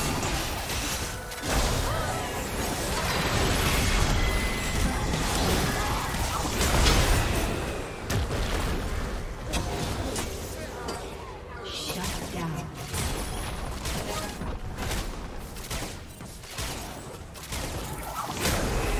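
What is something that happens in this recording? Game spell effects crackle and boom during a battle.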